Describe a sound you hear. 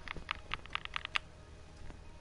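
Menu clicks tick quickly one after another.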